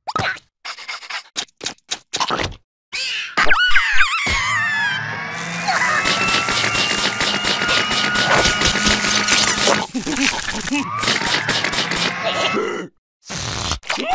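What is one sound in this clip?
A cartoon creature slurps noodles noisily.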